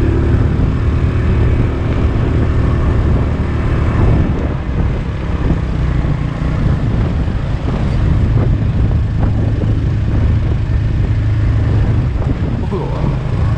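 A motorbike engine hums steadily close by as it rides along.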